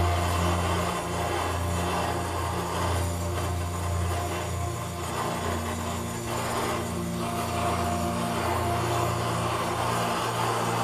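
Metal tongs scrape against the furnace opening.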